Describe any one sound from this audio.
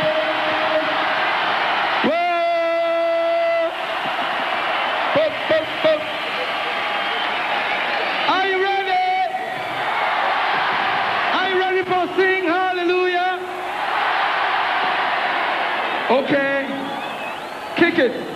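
A large crowd cheers and screams in a big echoing hall.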